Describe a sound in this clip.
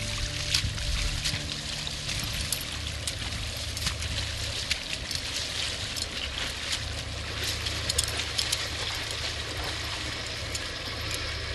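A stream of water flows and burbles steadily.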